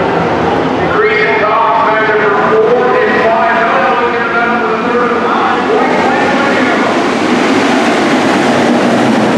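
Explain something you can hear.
A pack of stock cars roars by, racing on a dirt track.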